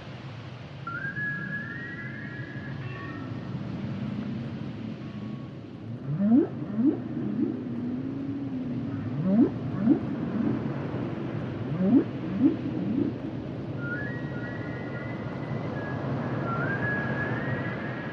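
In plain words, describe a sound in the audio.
Dolphins whistle high and briefly underwater.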